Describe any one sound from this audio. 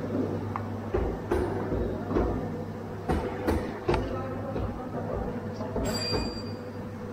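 Plastic parts knock and click as an air filter cover is handled.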